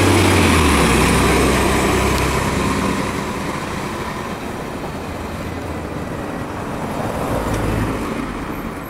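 A bus engine rumbles loudly as the bus pulls away and fades.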